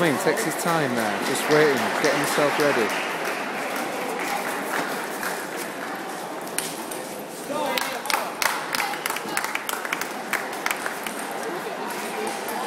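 A crowd murmurs throughout a large echoing hall.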